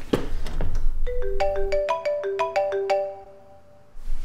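A phone rings with a melodic ringtone.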